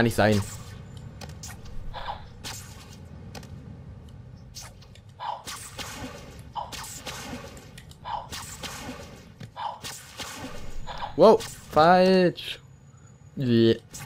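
Webs shoot out with quick, sharp swishing snaps again and again.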